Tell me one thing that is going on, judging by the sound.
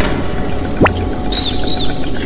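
A small rat squeaks in high chirps.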